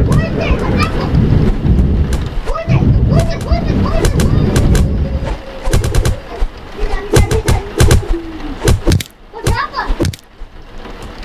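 A bat thwacks hard against a body several times.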